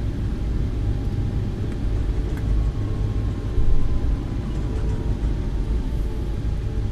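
Tyres roll and thump over a taxiway.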